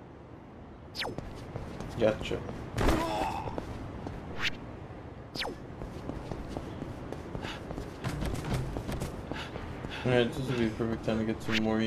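Footsteps run quickly along a paved street.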